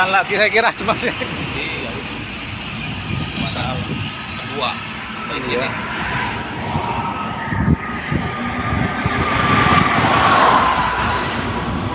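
Tyres roar steadily on a road as a vehicle drives along.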